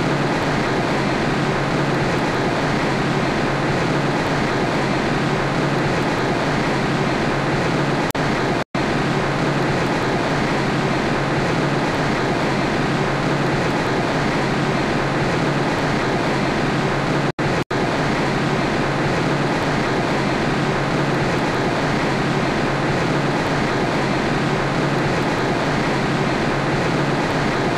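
Wind and road noise rush loudly around a moving car.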